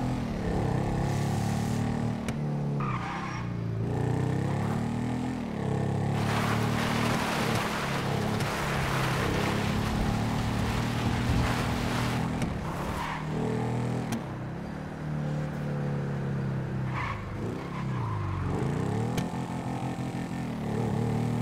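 A motorcycle engine revs and roars, rising and falling in pitch as it speeds along.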